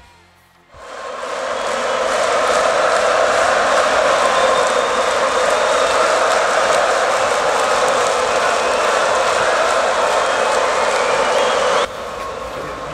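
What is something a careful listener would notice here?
A huge crowd cheers and roars loudly outdoors.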